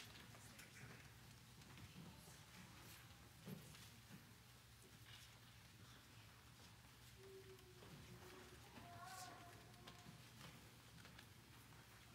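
Small children's footsteps thump on a hollow wooden stage in a large echoing hall.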